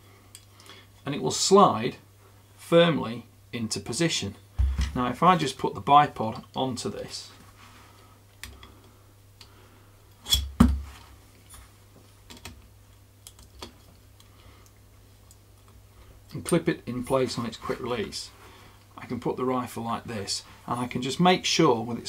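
A man talks calmly and close to a microphone, explaining.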